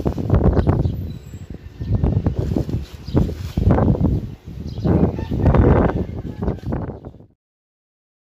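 Hands scrape and rustle through loose soil close by.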